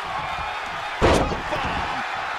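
A body slams hard onto a ring mat with a heavy thud.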